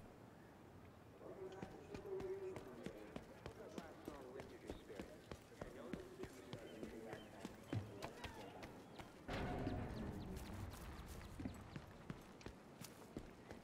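Footsteps run quickly on hard ground.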